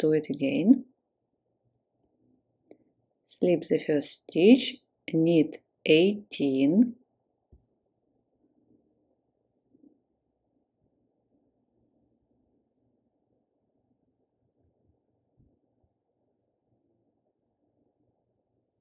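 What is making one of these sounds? Metal knitting needles click and scrape softly.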